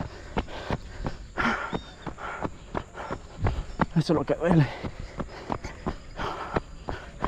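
Footsteps crunch quickly and steadily on a dirt road.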